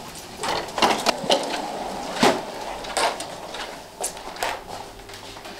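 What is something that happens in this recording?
Footsteps thud across a floor.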